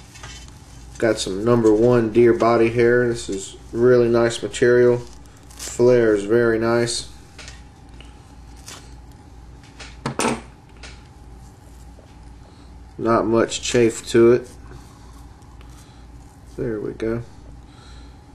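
A man speaks calmly, close by, with pauses.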